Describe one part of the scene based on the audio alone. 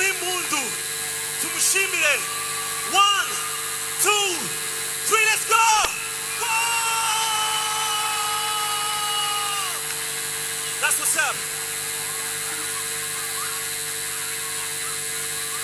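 A large crowd cheers and screams throughout.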